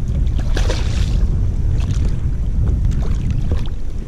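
A fish splashes and thrashes in the water.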